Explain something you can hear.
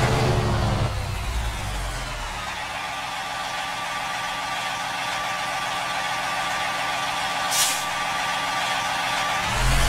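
A truck engine idles quietly.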